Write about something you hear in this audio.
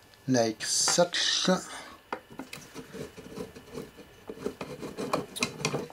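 Fingers rub and tap against a panel close by.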